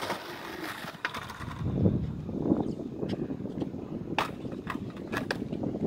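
A skateboard tail knocks sharply on concrete.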